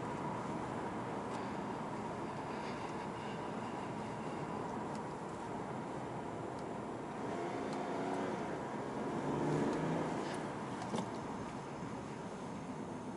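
Tyres rumble on asphalt, heard from inside a driving car.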